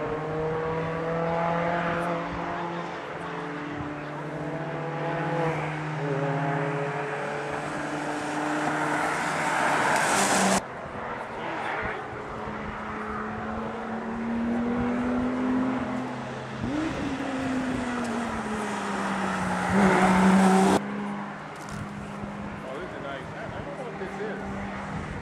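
A car engine roars past at speed, revving up and down between gear changes.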